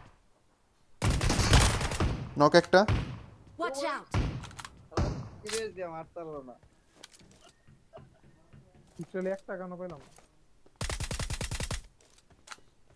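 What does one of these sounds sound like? Rapid gunshots crack in quick bursts.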